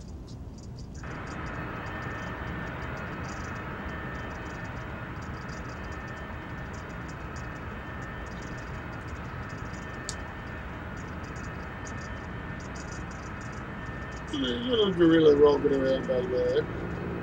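A steady low engine hum drones on.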